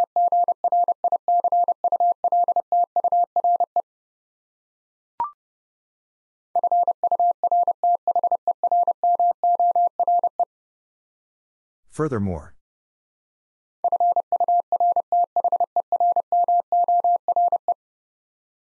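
Morse code beeps out in quick, steady bursts of a single high tone.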